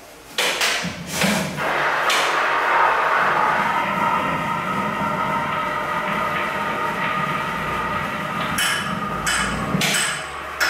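A tuba blows loud, breathy bursts and sustained low notes close by.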